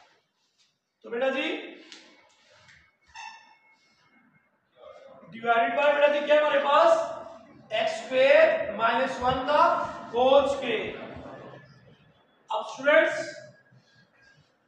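A man speaks calmly and clearly, as if explaining, close by.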